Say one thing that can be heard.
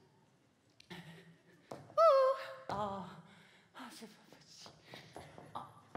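High heels tap on a stage floor.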